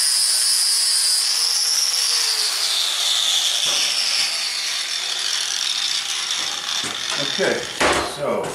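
An angle grinder whines against metal and winds down.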